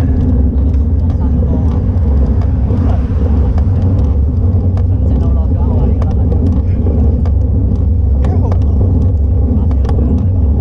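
Wind rumbles loudly past a bicycle moving at speed.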